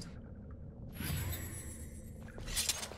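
A magic spell rings out with a bright shimmering whoosh.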